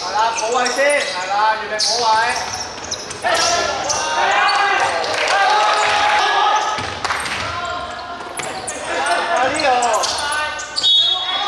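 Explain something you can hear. Sneakers squeak sharply on a hard court floor.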